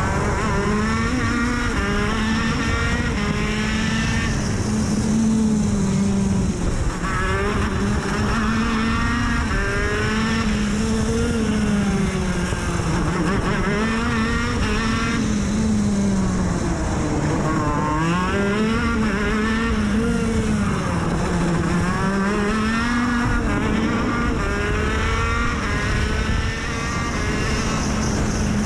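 A kart engine roars close by, its pitch rising and falling as it speeds up and slows for corners.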